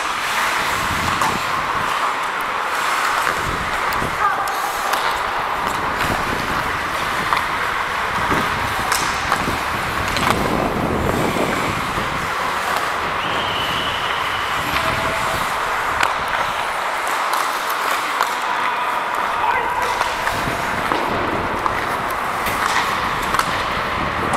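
Skate blades scrape and carve across ice in a large echoing rink.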